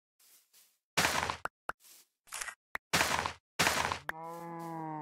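Leafy plants rustle and crunch as they are broken.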